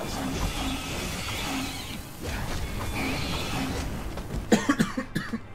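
Game combat sounds clash and thud.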